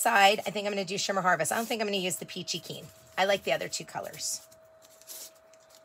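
A towel rubs and scuffs against a surface.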